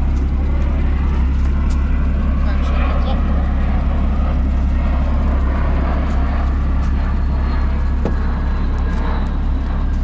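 An electric motor whirs as a car's rear lid rises.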